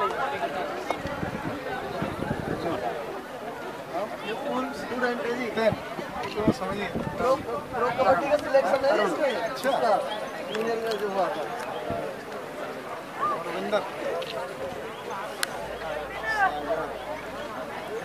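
A crowd of men talk over one another nearby, outdoors.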